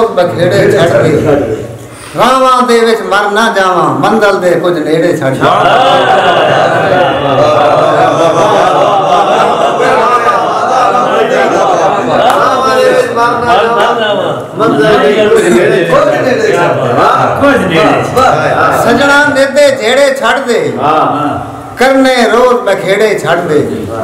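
A middle-aged man sings with feeling, close by.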